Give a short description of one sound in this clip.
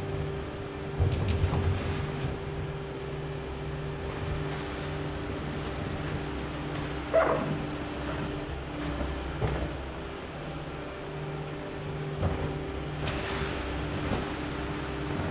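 Metal clanks and bangs as a loader bucket scrapes and drops.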